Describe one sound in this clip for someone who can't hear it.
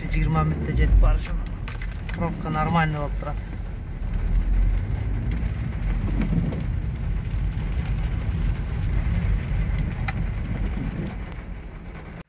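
Rain patters on a windshield.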